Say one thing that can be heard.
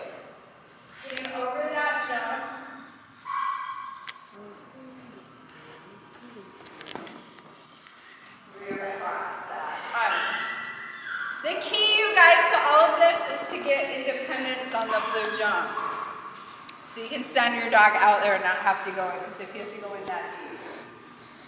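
A woman speaks with animation, close by, in a large echoing hall.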